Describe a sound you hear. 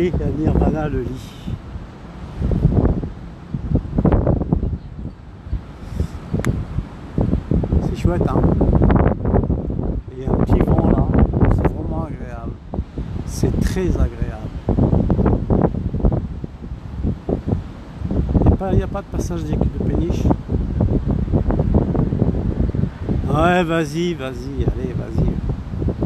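Wind buffets loudly against the microphone outdoors.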